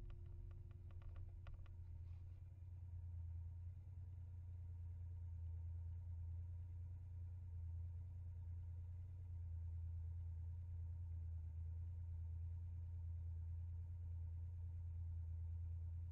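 A car engine idles with a low, steady hum.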